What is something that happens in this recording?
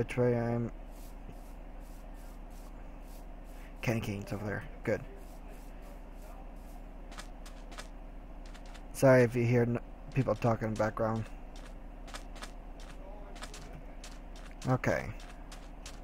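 Footsteps crunch softly on grass and sand.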